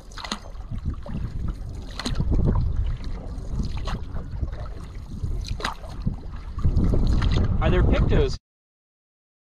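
Wind gusts across open water, rumbling loudly.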